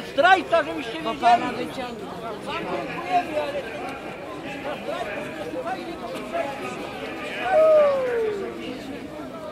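Men and women call out and chant loudly in the open air.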